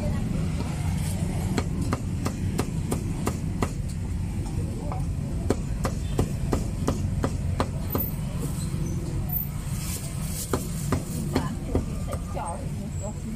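A cleaver chops rapidly on a wooden block.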